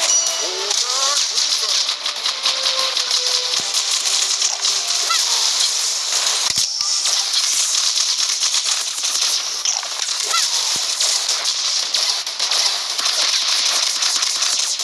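Rapid gunfire crackles and pops in quick bursts.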